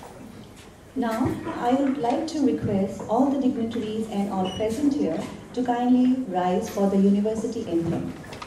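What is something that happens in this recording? A young woman speaks calmly into a microphone, heard through loudspeakers in a large room.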